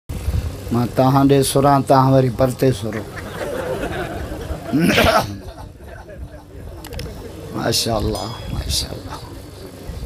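A middle-aged man chants loudly through a microphone and loudspeakers.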